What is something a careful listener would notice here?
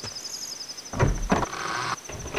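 A heavy wooden door creaks open.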